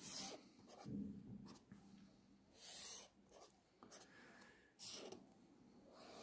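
A marker squeaks as it draws lines on paper.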